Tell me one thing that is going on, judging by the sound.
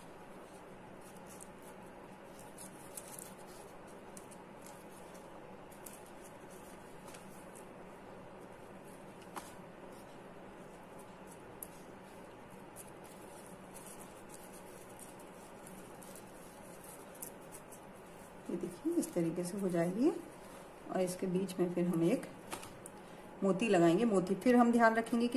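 Soft foam pieces rustle faintly as hands press them together.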